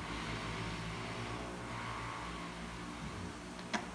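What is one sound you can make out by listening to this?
A phone is set down on a table with a light tap.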